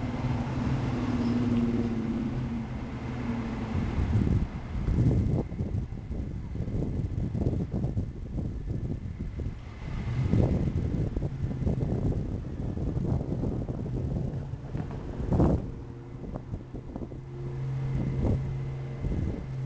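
Train cars roll slowly along the track with clanking wheels and knocks.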